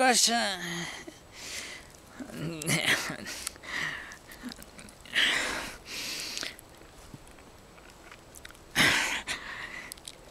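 A man breathes and sniffs noisily close up.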